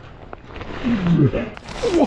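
A fish splashes and thrashes at the water's surface.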